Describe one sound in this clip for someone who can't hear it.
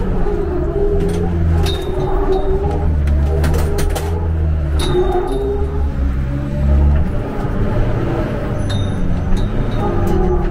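Tyres screech as a car slides.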